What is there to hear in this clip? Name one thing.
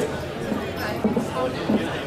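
Pool balls click together on another table.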